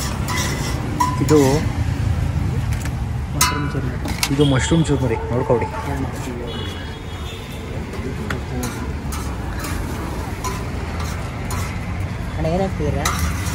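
Men talk and laugh nearby.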